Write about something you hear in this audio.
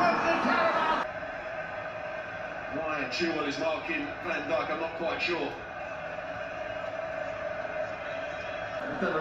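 A stadium crowd roars through a television.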